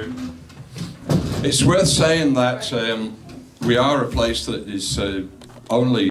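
A middle-aged man talks calmly into a microphone.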